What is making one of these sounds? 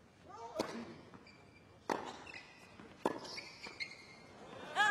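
A tennis ball is struck sharply back and forth with rackets.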